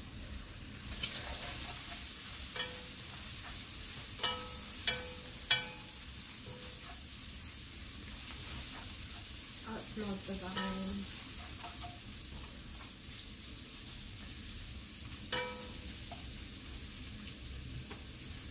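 Food sizzles in a pot.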